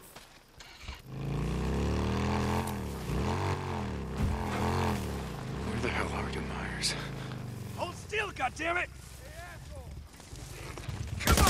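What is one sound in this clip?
A motorcycle engine starts, rumbles and revs.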